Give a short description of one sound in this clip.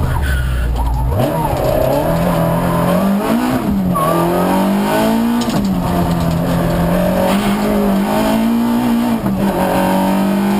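A car engine roars loudly, revving up and down as the gears change.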